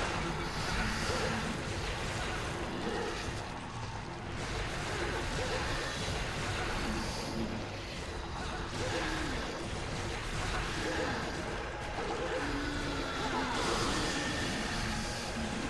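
A large creature growls and roars.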